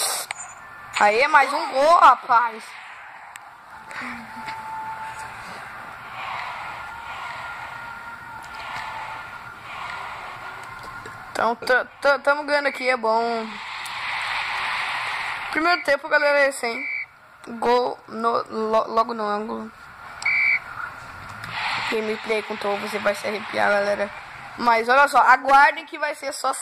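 A boy talks loudly and excitedly close by.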